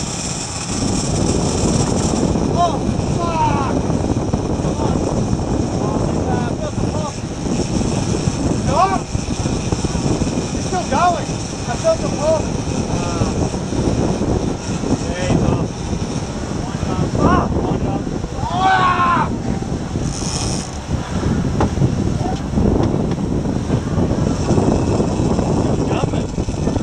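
Water churns and rushes in a boat's wake.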